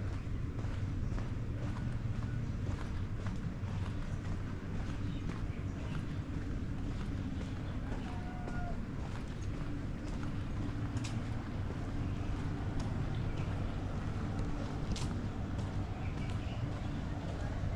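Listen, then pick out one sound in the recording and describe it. Footsteps tap steadily on a hard path.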